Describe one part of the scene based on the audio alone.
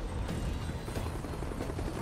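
A helicopter rumbles overhead.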